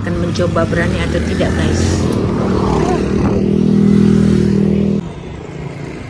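A motorbike engine hums nearby.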